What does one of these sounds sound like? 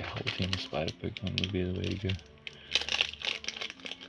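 A plastic wrapper tears open.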